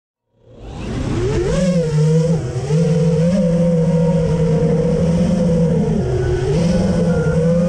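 Small drone motors whine loudly, rising in pitch as they spin up and then wavering up and down.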